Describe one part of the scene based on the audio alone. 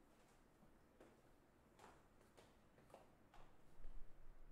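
Hard-soled shoes step across a wooden floor.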